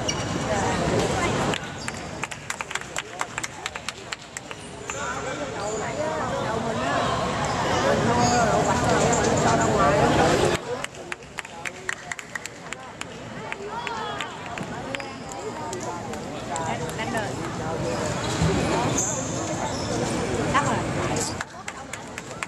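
Shuttlecocks are struck sharply with rackets in a rally.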